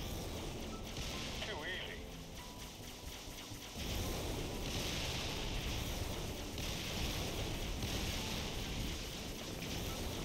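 A vehicle's energy cannon fires in bursts at a structure.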